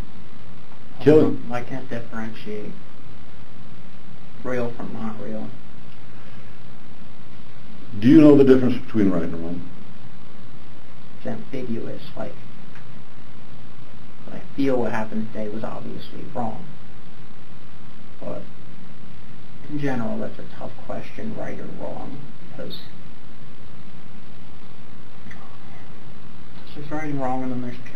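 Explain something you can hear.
A young man speaks quietly in short bursts, heard through a distant room microphone.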